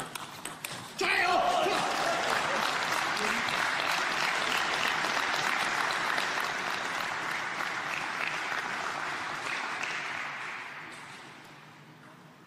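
A crowd applauds loudly and then fades.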